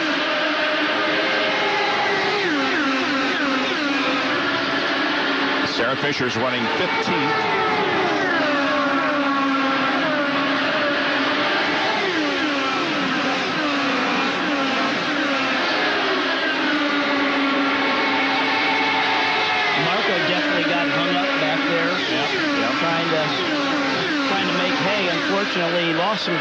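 Race car engines scream loudly and fall in pitch as the cars speed past.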